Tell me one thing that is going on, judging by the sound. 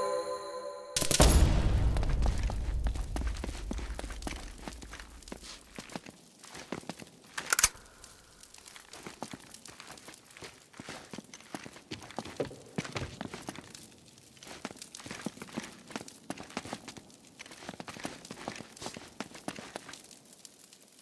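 Footsteps scuff across a stone floor.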